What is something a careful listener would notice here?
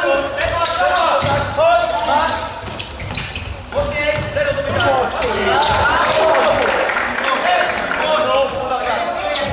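A ball thumps off players' feet in an echoing hall.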